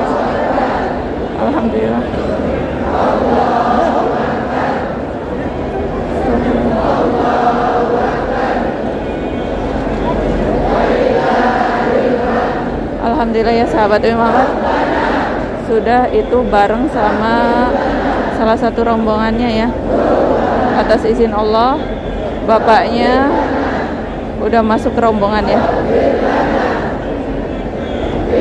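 A large crowd chants together in unison in a large echoing hall.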